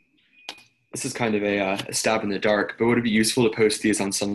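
A man speaks calmly, heard through an online call.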